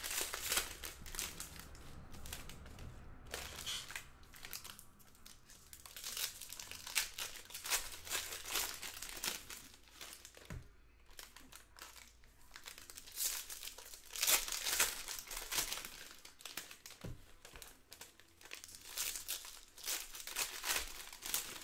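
Foil card wrappers crinkle and tear as they are ripped open.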